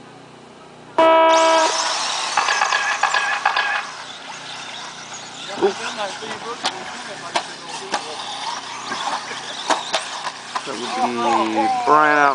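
Small electric model cars whine and buzz as they race around a track.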